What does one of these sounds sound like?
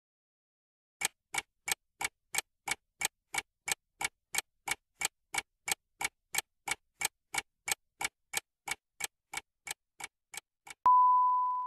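A countdown timer ticks steadily.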